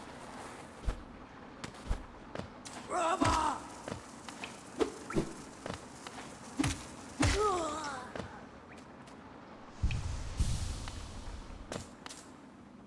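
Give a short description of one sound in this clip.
A sword slashes with sharp swishing hits.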